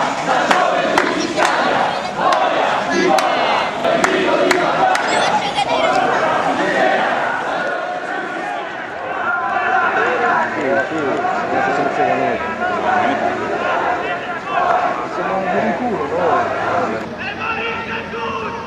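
A crowd of marchers chants and shouts outdoors.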